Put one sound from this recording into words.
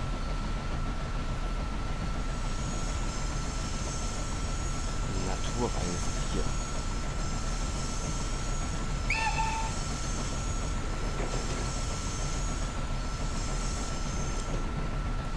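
A steam locomotive rumbles and chugs steadily along the track.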